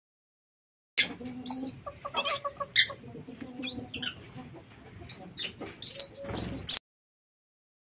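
A small bird chirps and trills nearby.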